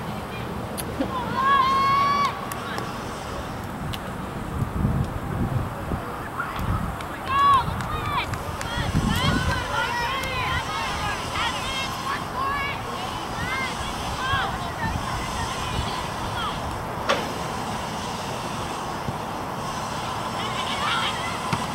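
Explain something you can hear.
Young women shout to each other in the distance on an open field.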